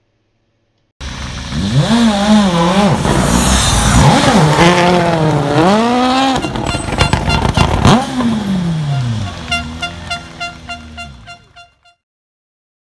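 A rally car's engine revs hard and roars past nearby.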